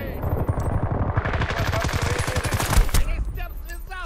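An assault rifle fires.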